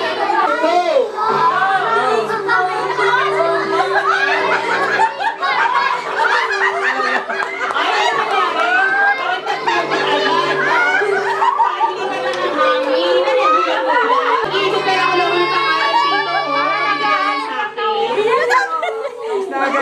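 A group of adults and children chatter and laugh loudly together.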